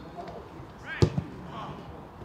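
A football is kicked hard with a sharp thud.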